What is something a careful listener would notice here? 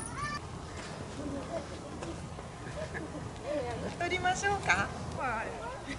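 A small child babbles and squeals nearby.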